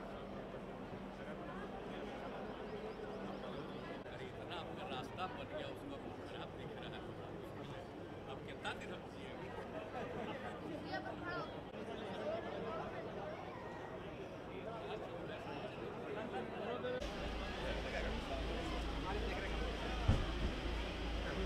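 A crowd of men chatter and murmur outdoors.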